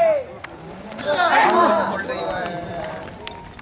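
Men shout excitedly outdoors.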